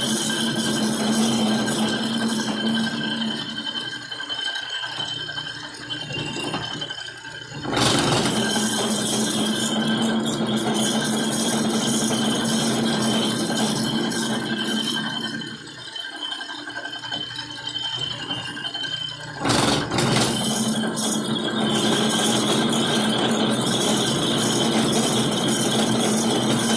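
A lathe motor hums steadily as the chuck spins.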